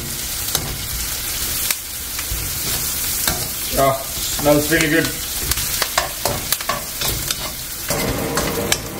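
Food sizzles and fries in a pan.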